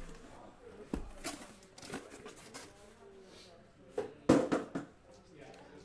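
Boxes knock softly onto a table.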